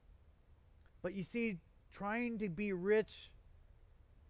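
A man speaks calmly into a microphone, heard through a loudspeaker.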